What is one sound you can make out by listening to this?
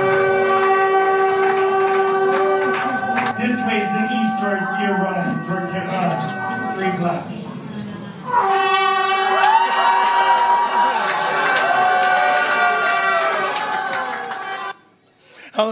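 An elderly man sings through a microphone.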